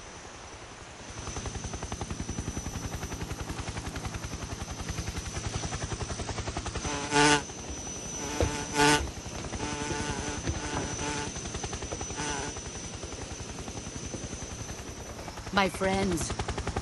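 A helicopter's rotor thumps steadily overhead.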